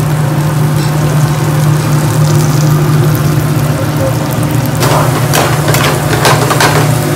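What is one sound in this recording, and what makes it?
Oil sizzles softly in a frying pan.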